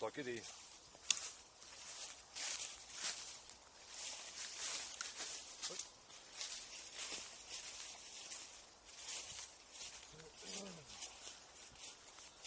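Footsteps crunch through dry leaves and undergrowth.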